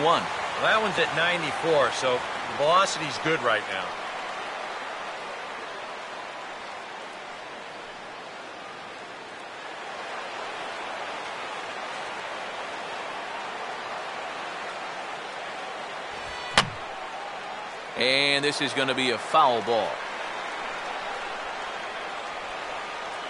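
A large crowd murmurs steadily in a stadium.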